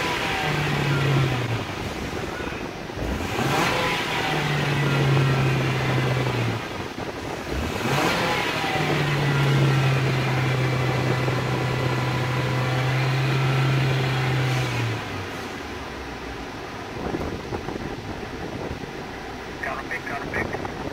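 A car engine revs up hard several times, then settles back to a low idle.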